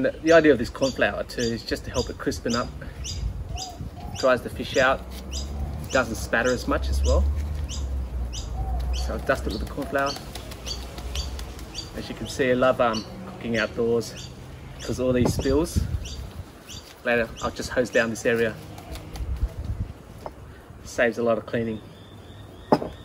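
A man talks calmly and cheerfully close to a microphone.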